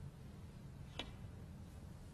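A cue sharply strikes a snooker ball.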